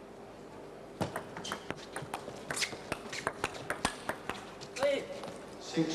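A ping-pong ball clicks rapidly back and forth off paddles and a table.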